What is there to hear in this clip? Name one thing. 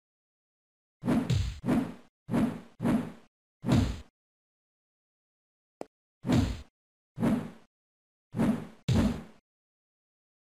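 Punches thud in a scuffle.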